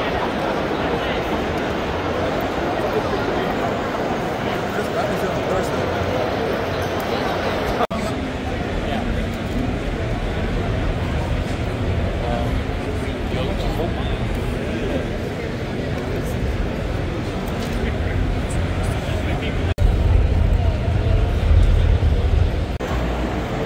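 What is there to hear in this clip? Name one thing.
A large crowd chatters loudly in a big echoing hall.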